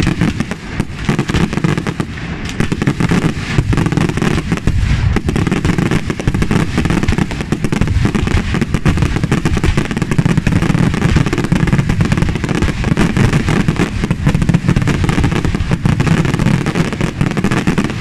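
Fireworks crackle and pop rapidly overhead, outdoors.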